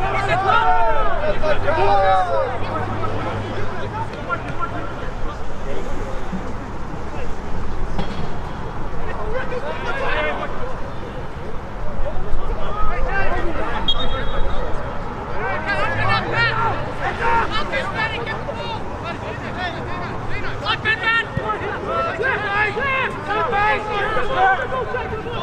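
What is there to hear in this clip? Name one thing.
Young men shout and call out to each other across an open outdoor field.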